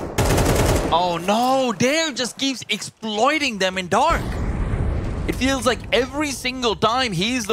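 A young man talks excitedly through a headset microphone.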